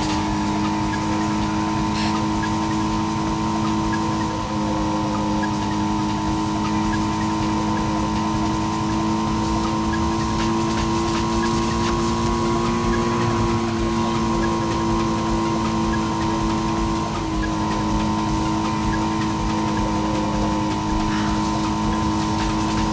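A car engine hums steadily at high speed, its pitch rising and dipping slightly.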